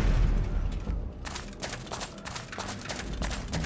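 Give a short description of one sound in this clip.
Heavy armoured footsteps clank on stone in a large echoing hall.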